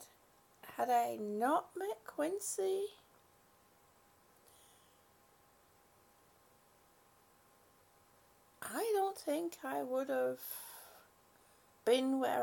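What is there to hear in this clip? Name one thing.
A middle-aged woman speaks calmly close to a microphone, pausing between phrases.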